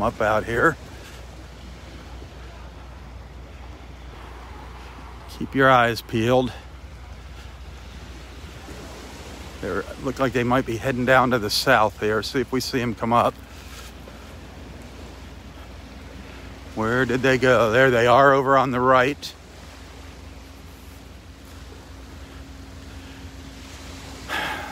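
Small waves lap gently on a beach.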